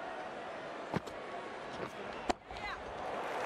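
A bat strikes a ball with a sharp crack.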